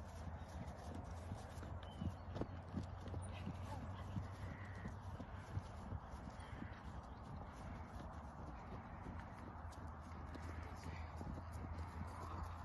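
A horse canters on grass with dull, muffled hoofbeats.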